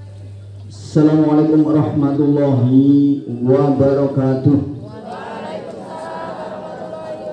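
An elderly man speaks loudly into a microphone, heard over a loudspeaker outdoors.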